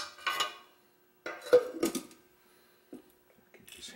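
A metal lid clanks down on a hard workbench.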